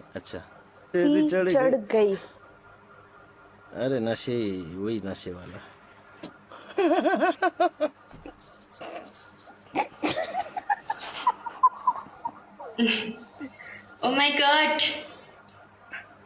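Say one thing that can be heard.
A young woman talks and laughs over an online call.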